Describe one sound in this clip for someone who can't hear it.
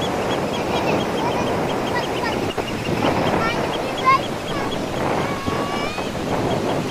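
A young boy shouts and laughs nearby.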